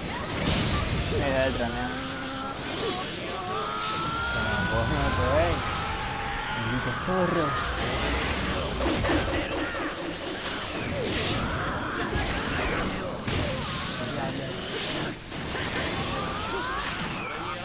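Blasts and impacts crash repeatedly during a fast fight.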